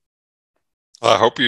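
An elderly man speaks briefly over an online call.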